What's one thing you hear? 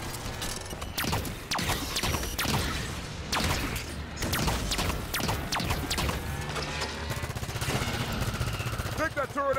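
Energy weapons fire in rapid bursts with sharp zapping blasts.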